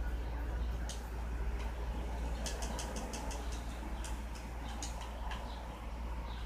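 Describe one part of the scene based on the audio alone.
Fingers tap lightly on a touchscreen.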